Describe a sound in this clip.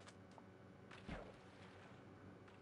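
Water splashes loudly as a swimmer plunges in.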